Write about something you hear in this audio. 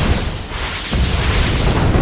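Weapons fire and explosions boom in a battle.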